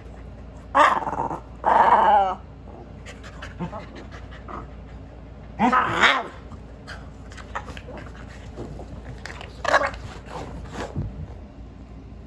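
A dog growls and barks playfully up close.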